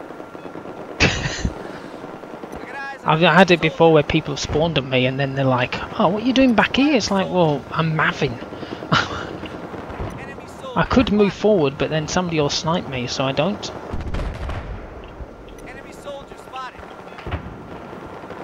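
Heavy cannon fire booms in short bursts.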